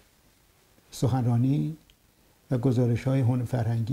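An elderly man speaks slowly in short bursts close to a microphone.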